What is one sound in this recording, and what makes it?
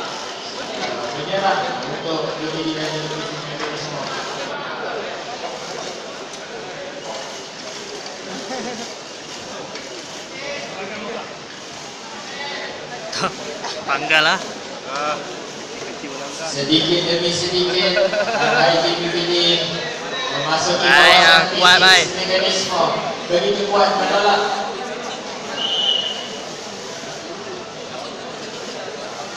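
A crowd of young men chatters nearby in a large echoing hall.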